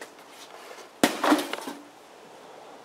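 A pickaxe strikes a wooden box with a sharp crack.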